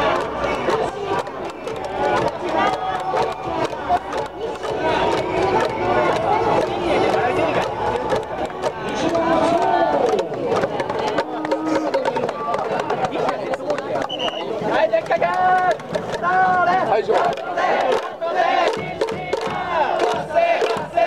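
A large crowd of fans chants and sings together outdoors in a stadium.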